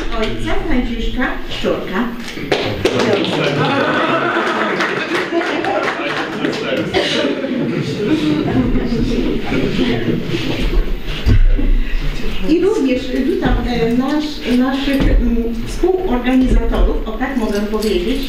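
A man speaks to an audience through a microphone in an echoing room.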